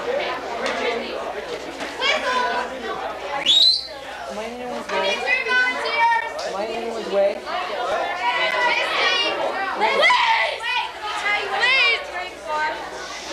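Adults talk and shout over one another close by, sounding lively.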